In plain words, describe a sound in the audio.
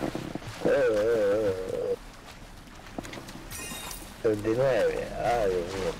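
Water splashes as a swimmer moves through it.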